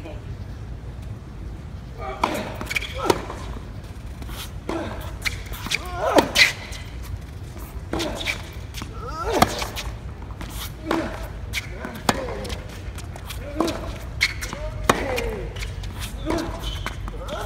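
Tennis balls are struck sharply with rackets, back and forth in a rally.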